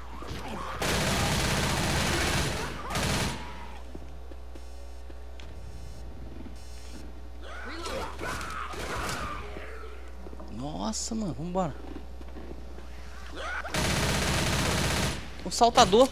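A submachine gun fires rapid bursts of shots.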